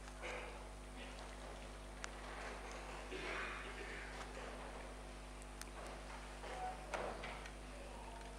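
A man murmurs a prayer quietly close to a microphone.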